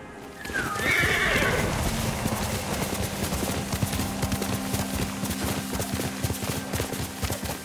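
A horse gallops over grass with quick, thudding hoofbeats.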